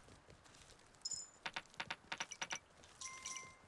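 Coins clink and jingle in quick succession.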